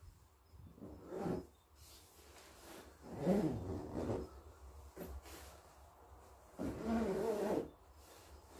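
A sleeping bag rustles as a man wriggles inside it.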